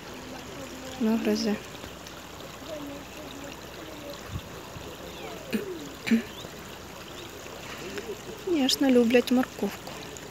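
A young child calls out nearby outdoors.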